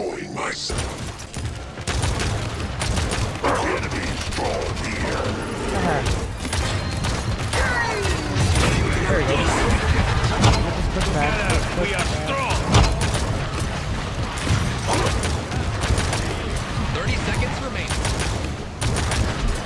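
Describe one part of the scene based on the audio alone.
Energy weapons fire in rapid bursts with sharp zaps.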